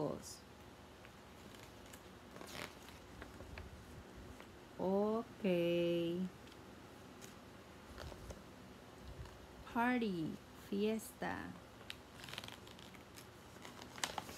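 Paper pages rustle as a book is turned.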